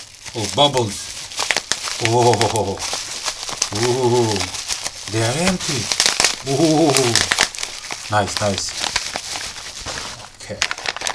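Plastic bubble wrap crinkles and rustles in hands.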